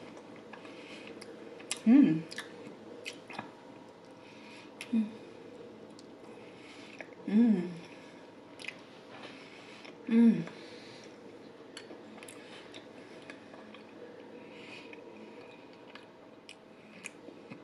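A woman chews food loudly with wet smacking sounds close to a microphone.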